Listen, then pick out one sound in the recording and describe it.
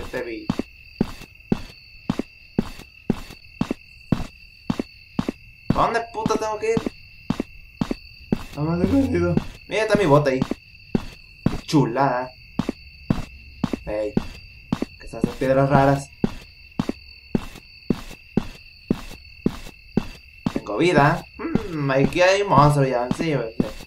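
Footsteps thud steadily on the ground.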